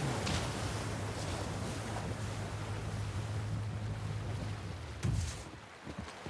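A motorboat engine hums steadily as the boat speeds over water.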